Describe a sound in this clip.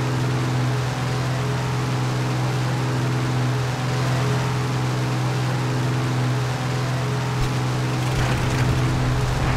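Wind rushes past a plane.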